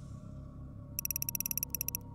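Rapid electronic clicks tick from a game menu.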